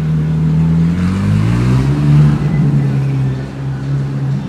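A sports car engine revs loudly as the car pulls away.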